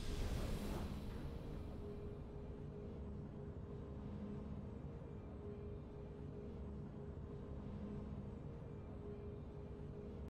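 Soft, low game music hums steadily.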